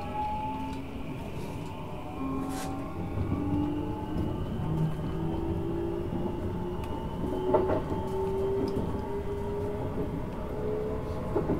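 An electric train motor whines, rising slowly in pitch.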